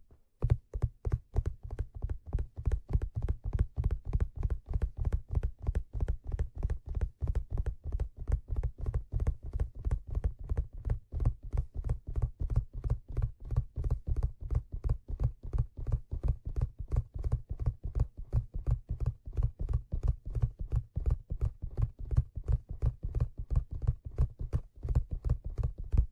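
Fingertips tap and scratch rapidly on a leather surface close to a microphone.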